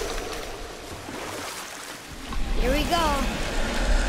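Oars splash and paddle through water.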